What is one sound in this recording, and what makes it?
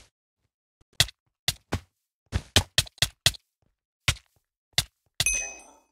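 A wooden sword strikes a player in a video game.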